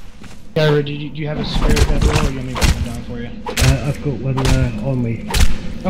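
A blade squelches wetly into flesh.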